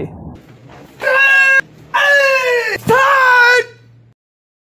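A man lets out loud, forceful shouts.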